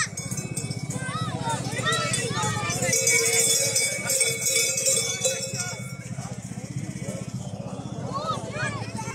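Men and women chatter and call out in a lively crowd outdoors.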